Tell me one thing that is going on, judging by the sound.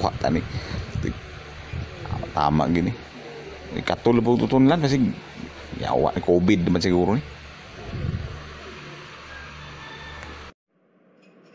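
A man speaks angrily in a synthetic computer voice.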